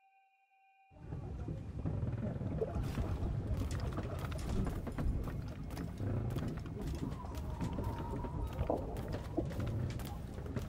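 Footsteps thud and creak on a wooden floor.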